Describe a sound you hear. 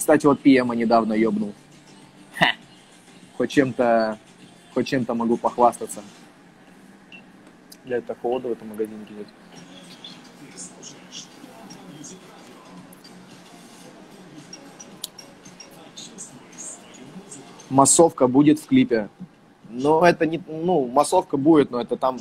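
A young man talks casually and close up into a phone microphone, with pauses.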